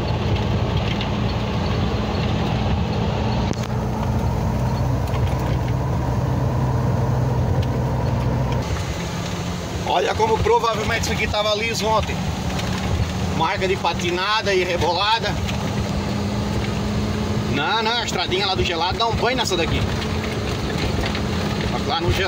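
Tyres rumble over a bumpy dirt road.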